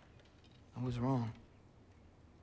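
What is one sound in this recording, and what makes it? A young boy speaks softly.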